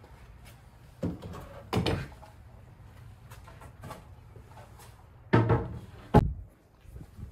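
Wooden boards knock and clatter as they are lifted and set down on a bench.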